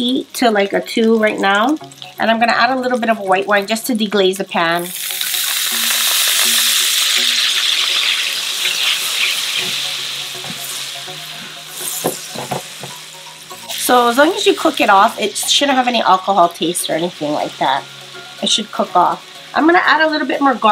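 Butter sizzles and bubbles in a hot pan.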